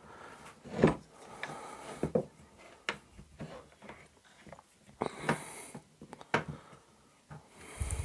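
A screwdriver turns a screw with faint scraping clicks.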